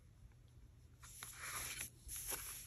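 A brush dabs and scrapes softly against a wooden surface.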